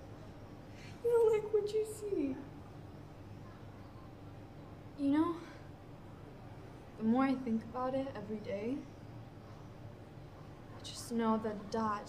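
A young woman speaks hesitantly and emotionally, close by.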